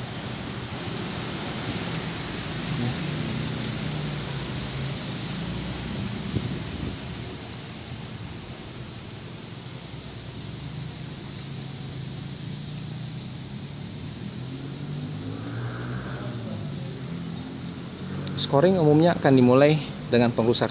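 A shallow river flows gently over stones.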